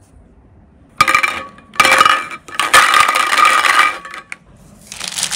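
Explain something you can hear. Hollow plastic toys clatter against each other in a bowl.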